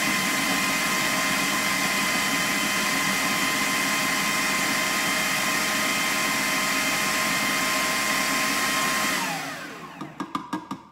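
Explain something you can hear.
A food processor whirs loudly and steadily, then winds down.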